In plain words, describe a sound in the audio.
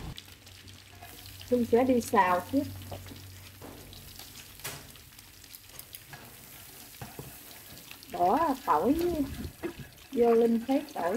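Garlic sizzles in hot oil in a pan.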